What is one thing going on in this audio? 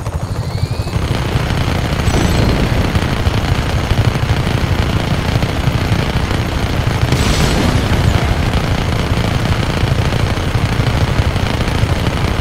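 Machine guns fire in rapid bursts.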